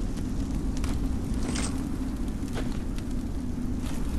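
Metal armour clanks as a knight kneels down.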